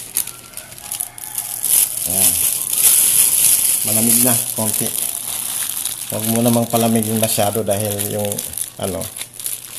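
Plastic wrap crinkles and rustles close by.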